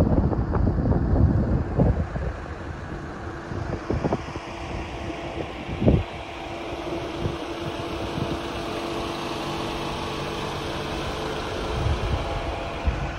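Wind gusts across the microphone outdoors with a low rumble.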